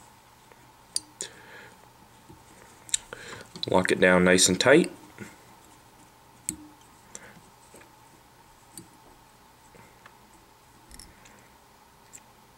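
Small tools click and tap softly.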